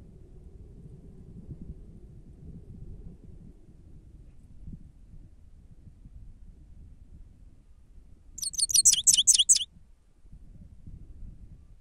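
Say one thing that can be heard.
A bird pecks at seeds with soft taps.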